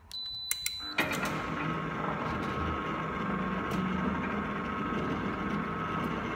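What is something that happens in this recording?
An electric gate motor starts and hums steadily.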